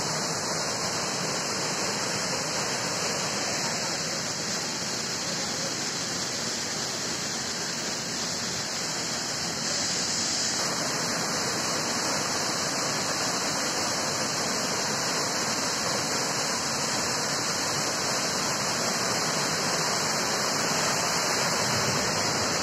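A waterfall rushes and splashes steadily nearby.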